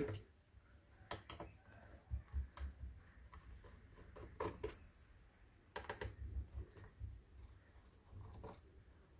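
A screwdriver turns small screws with soft clicks and scrapes.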